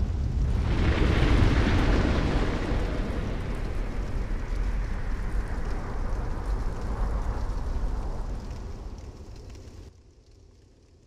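Flames roar loudly and then die down.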